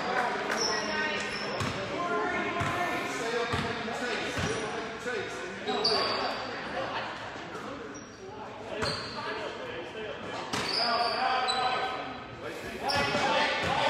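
A crowd of spectators talks and calls out in a large echoing hall.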